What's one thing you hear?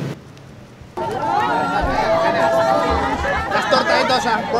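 A crowd of people shout and cheer loudly close by.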